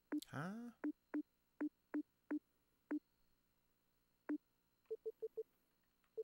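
Short electronic menu beeps blip one after another, then a quicker run of higher blips.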